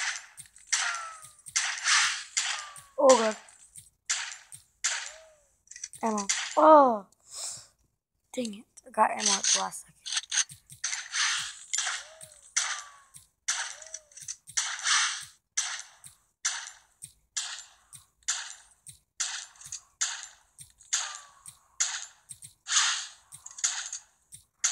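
Video game gunshots fire in short bursts, over and over.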